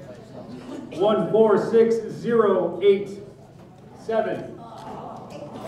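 A man speaks loudly through a microphone and loudspeaker.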